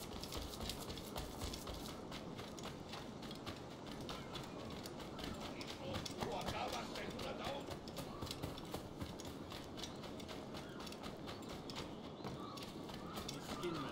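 Quick footsteps run over sandy ground.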